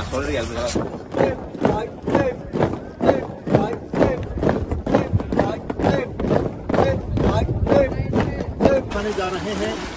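Many feet stamp in step as a large group marches.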